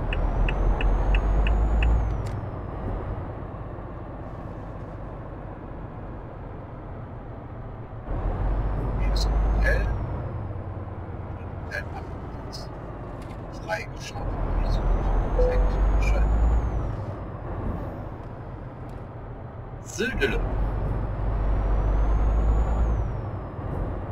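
A truck engine rumbles low and steadily, surging louder every few seconds as it speeds up.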